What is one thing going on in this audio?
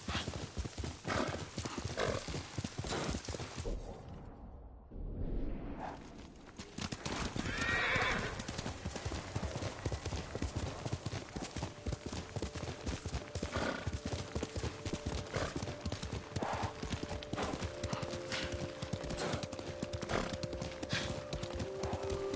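Horse hooves gallop quickly over a dirt path.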